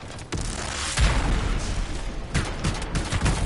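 A game explosion booms loudly.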